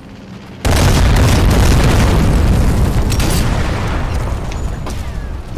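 A rifle fires with a loud boom that echoes and slowly rolls away.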